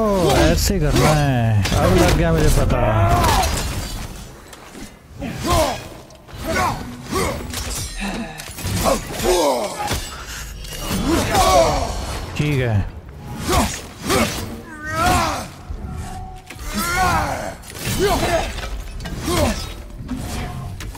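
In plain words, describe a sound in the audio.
Weapons clash and strike with sharp hits.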